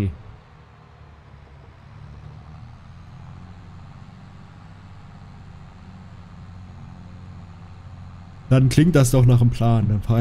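A tractor engine hums steadily from inside the cab.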